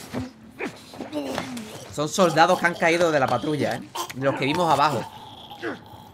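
Men grunt and groan while wrestling in a struggle.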